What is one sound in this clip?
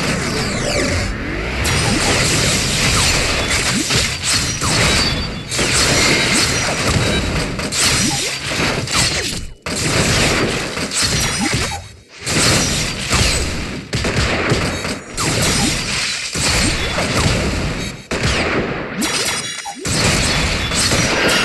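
Dramatic battle music plays.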